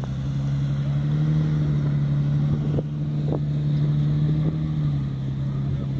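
An engine revs up nearby and settles back down.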